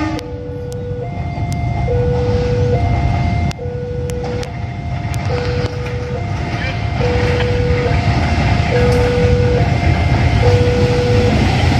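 A diesel locomotive rumbles as it approaches.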